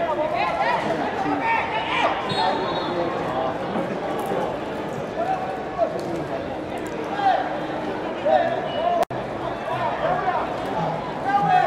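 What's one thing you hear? Footballers shout and call to each other across an open pitch.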